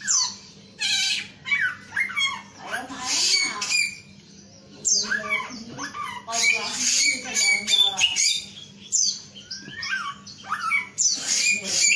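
A caged songbird sings loud, varied whistling and chirping phrases close by.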